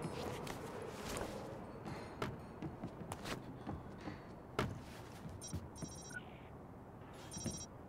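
Footsteps thud on wooden stairs and boards.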